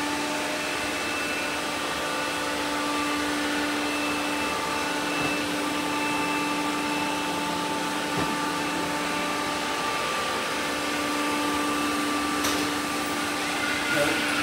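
A robot vacuum cleaner hums steadily as it moves across a floor.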